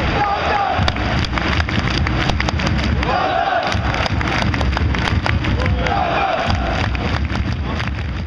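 Fans clap their hands in time.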